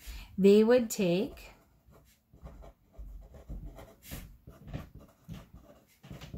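A marker squeaks and scratches softly on paper.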